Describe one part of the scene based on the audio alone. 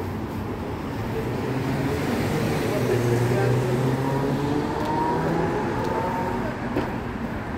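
A vehicle engine drones louder as it passes and then fades.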